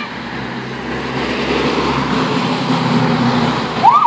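A pickup truck's engine rumbles as it drives past.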